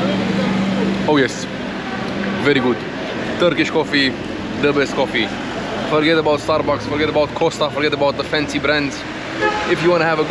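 A young man talks up close, with animation.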